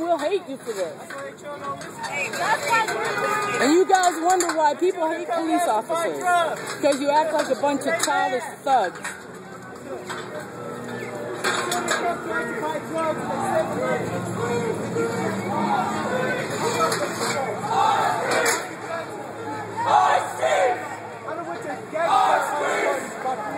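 Several people talk at once in a crowd outdoors.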